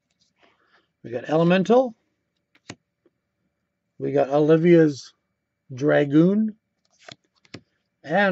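Playing cards slide and flick against each other.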